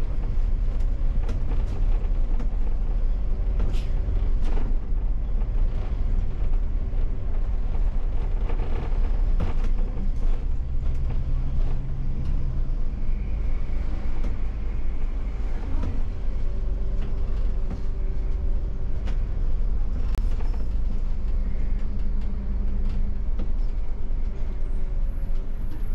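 The bus body rattles and knocks over the road.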